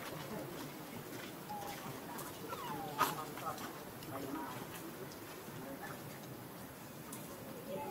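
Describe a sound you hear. A monkey makes soft, high squeaking calls.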